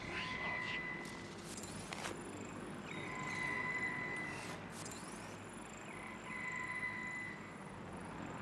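A high electronic tone hums in repeated spells.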